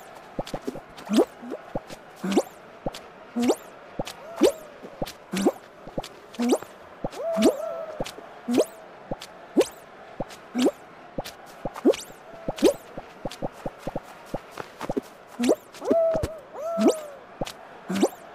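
Game tiles pop and click as they vanish.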